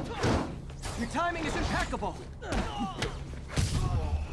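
A man shouts through game dialogue.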